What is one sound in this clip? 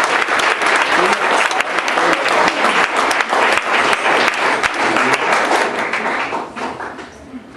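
An audience claps and cheers loudly in a room.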